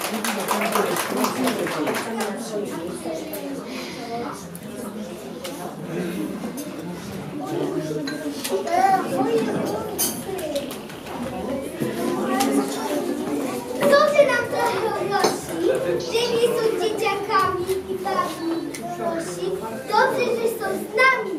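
A group of young children sing together close by.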